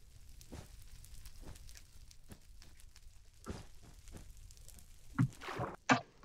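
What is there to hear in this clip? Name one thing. Wooden blocks thud softly as they are placed one after another.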